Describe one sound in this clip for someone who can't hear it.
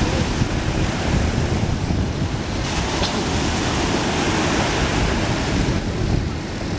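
Waves crash and wash in the surf close by.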